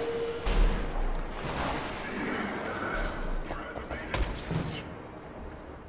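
Water splashes as a person wades through it.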